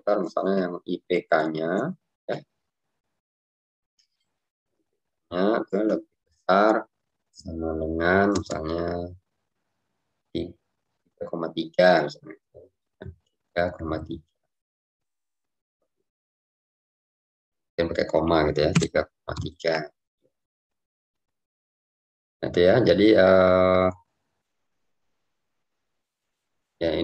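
A young man speaks calmly through a microphone in an online call, with pauses.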